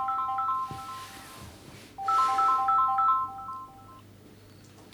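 A phone ringtone beeps in short repeated bursts.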